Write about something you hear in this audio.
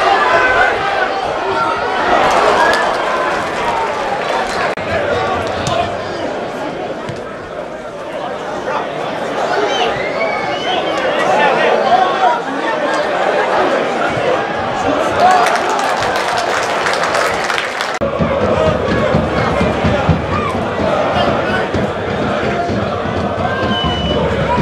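A crowd of spectators cheers in an open-air stadium.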